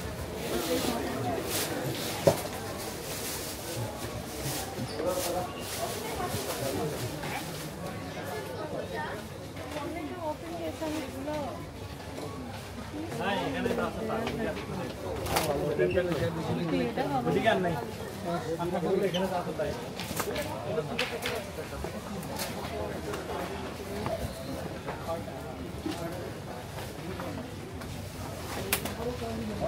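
A crowd of people chatters all around in a busy indoor space.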